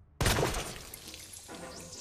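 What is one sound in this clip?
A blade squelches wetly into flesh.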